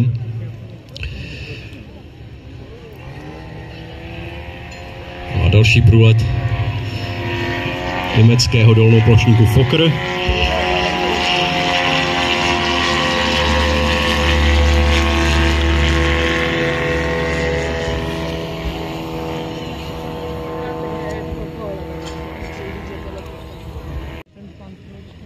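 A model airplane engine buzzes overhead, rising and falling in pitch as the plane passes.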